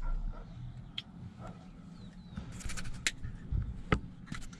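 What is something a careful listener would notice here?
A small plastic makeup case clicks open and shut.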